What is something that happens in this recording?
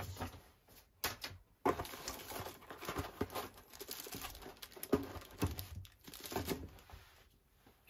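Cardboard scrapes and thumps as a box is handled.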